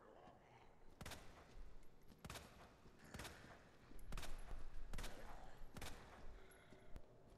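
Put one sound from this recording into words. Gunshots ring out in quick succession.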